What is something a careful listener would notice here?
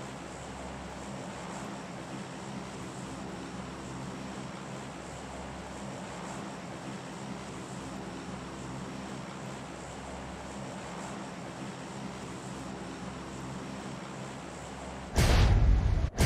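A plane's engines drone steadily.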